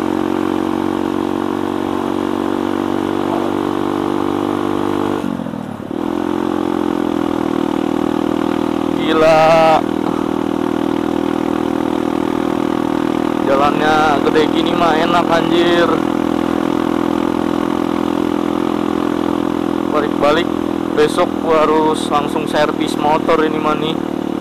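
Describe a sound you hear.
A motorcycle engine hums steadily, briefly dropping as the rider shifts gear.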